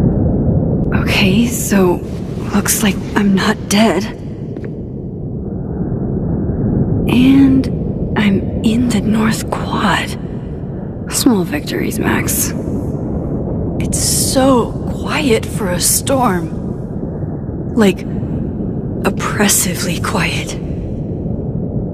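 A young woman speaks softly and thoughtfully, close by.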